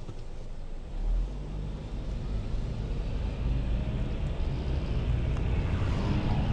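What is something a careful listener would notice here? A car engine grows louder as the car pulls away.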